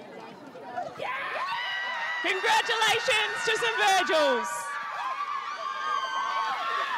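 Young women shout and cheer loudly together.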